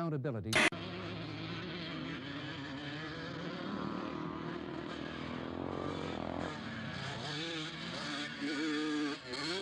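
A motorcycle engine revs and whines, heard through a small television speaker.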